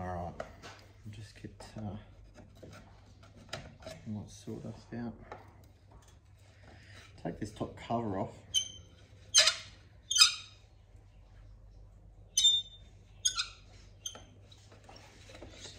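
A screwdriver scrapes and clicks against metal.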